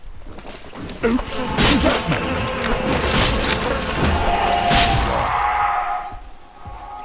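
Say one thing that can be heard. Magic blasts and weapon strikes clash in a fast fight.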